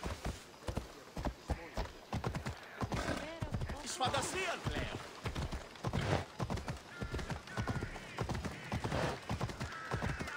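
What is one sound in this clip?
A horse's hooves clop steadily on stone paving.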